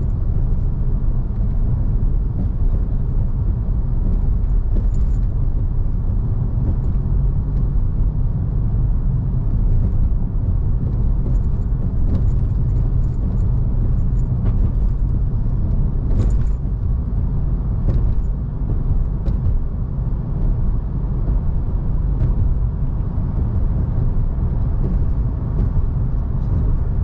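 Tyres roll on asphalt with a low, steady rumble.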